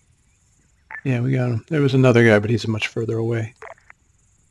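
A man speaks briefly over a crackling handheld radio.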